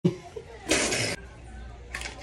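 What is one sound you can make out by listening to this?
A woman slurps loudly through a straw.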